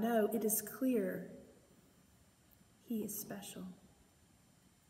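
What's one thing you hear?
A woman speaks calmly and warmly, close to a microphone.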